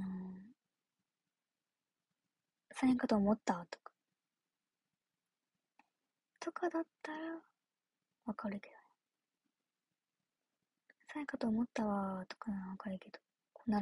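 A young woman speaks softly and casually close to a microphone, in short phrases with pauses.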